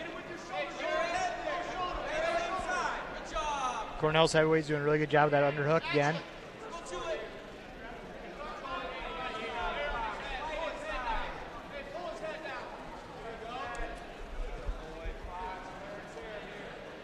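Spectators in a large echoing hall shout and call out encouragement.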